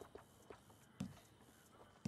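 A soft menu click sounds as an option changes.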